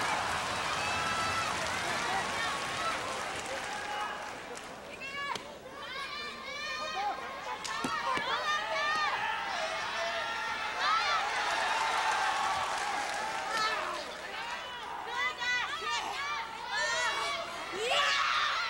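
A large indoor crowd cheers and murmurs throughout.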